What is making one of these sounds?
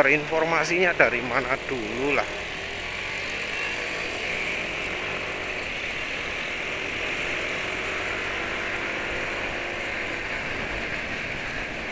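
Wind rushes past while riding outdoors.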